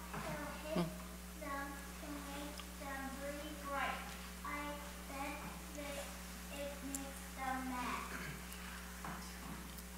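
A woman reads aloud calmly, heard through a microphone in a quiet echoing room.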